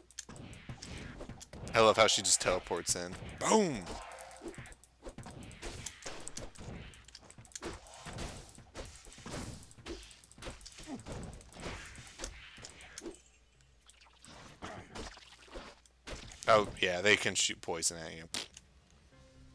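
Weapons clash and magic spells crackle in a game fight.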